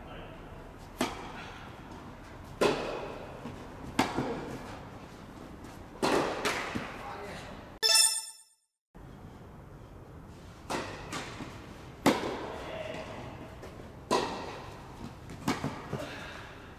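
A tennis ball is struck sharply back and forth by rackets in an echoing indoor hall.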